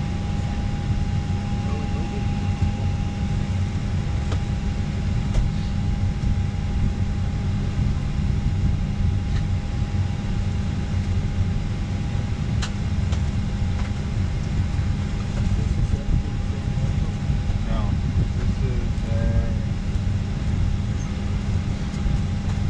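A jet engine drones steadily inside an aircraft cabin.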